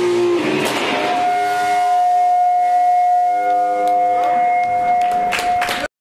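An electric guitar chord rings out loudly through an amplifier and slowly sustains.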